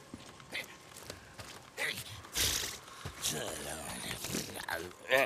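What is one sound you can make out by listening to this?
Footsteps crunch through dry brush and twigs.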